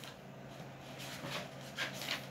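Paper pages rustle as a booklet is turned.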